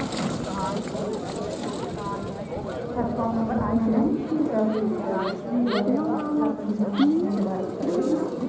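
Carriage wheels roll over grass.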